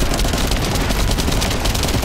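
A gun fires rapid bursts.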